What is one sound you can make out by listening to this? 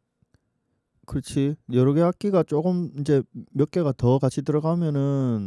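An elderly man speaks animatedly into a close microphone.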